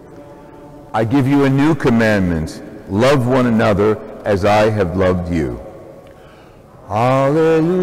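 A middle-aged man chants loudly into a microphone in an echoing space.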